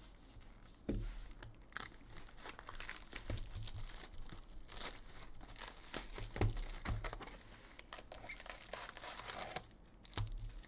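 Plastic wrap crinkles and rustles as it is torn off a box.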